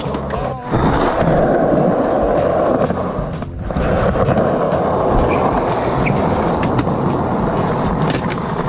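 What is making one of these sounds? Skateboard wheels clack over ramp edges.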